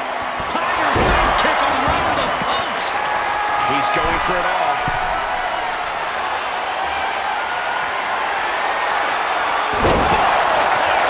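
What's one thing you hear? Heavy thuds sound as bodies slam onto the ring mat.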